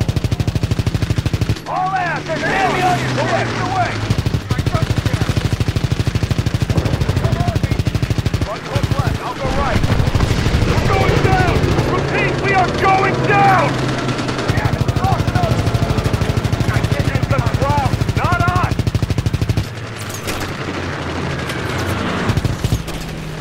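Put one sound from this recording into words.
Propeller aircraft engines drone steadily.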